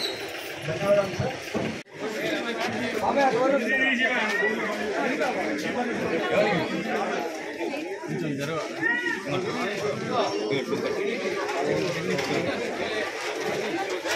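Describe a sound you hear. A crowd of men and women chatter close by outdoors.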